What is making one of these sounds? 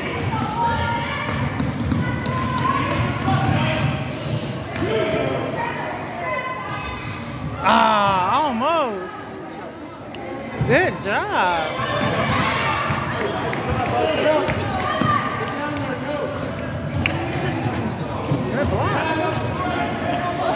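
Young players and spectators chatter and call out in an echoing gym.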